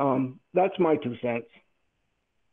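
A middle-aged man speaks briefly over an online call.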